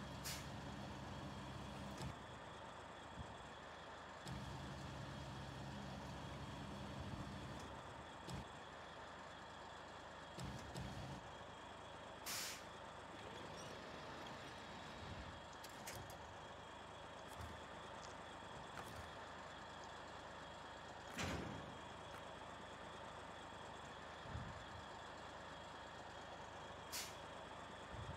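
Metal clanks sharply now and then.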